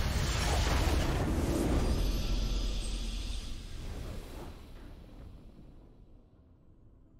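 A triumphant game fanfare plays and fades.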